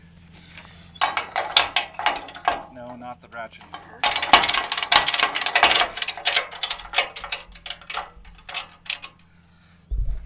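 A ratchet strap clicks rapidly as it is tightened.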